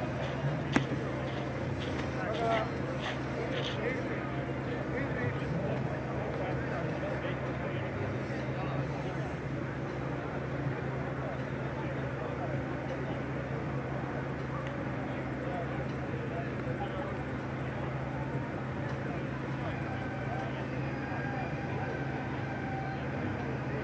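A car engine roars and revs in the distance.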